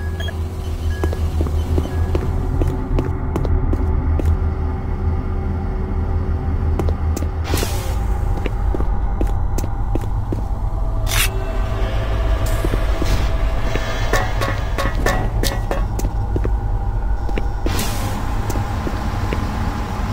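Footsteps clang on a metal grating floor.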